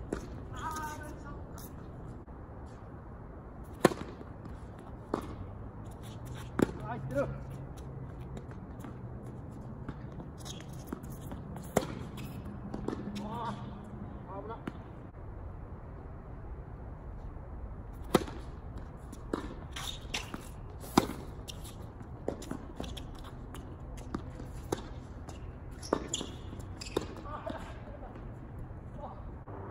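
Tennis balls are struck with rackets, with sharp pops back and forth outdoors.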